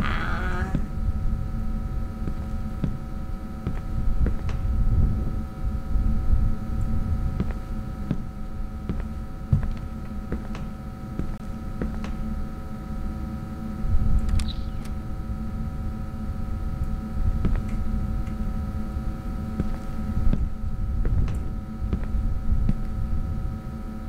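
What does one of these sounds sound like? Footsteps thud slowly on a hard floor.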